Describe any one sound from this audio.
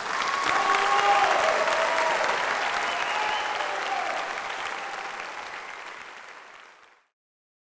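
A large crowd applauds in an echoing hall, fading away.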